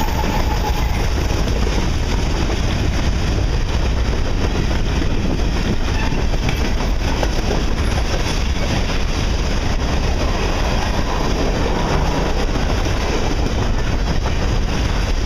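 A long freight train rumbles past close by, with wheels clattering over the rail joints.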